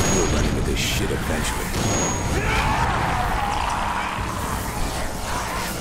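Creatures snarl and shriek close by.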